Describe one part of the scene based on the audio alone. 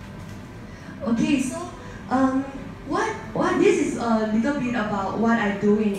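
A young woman speaks into a microphone with animation, heard through a loudspeaker in an echoing room.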